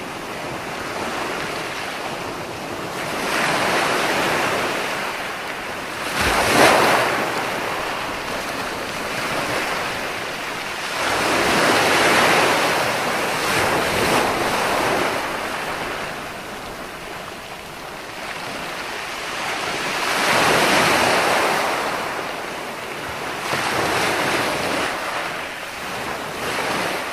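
Waves break and wash up onto the shore in slow, rolling surges.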